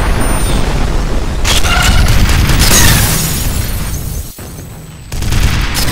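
Window glass shatters and rattles down.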